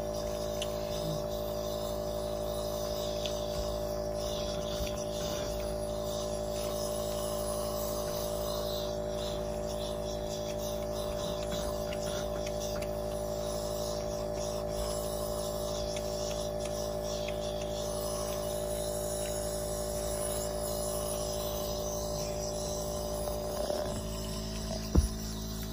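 A nebulizer machine hums steadily close by.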